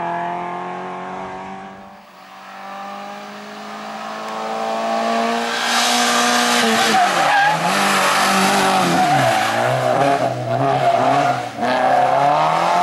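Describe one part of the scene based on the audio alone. A small rally car's engine roars close by, revving hard and dropping through gear changes.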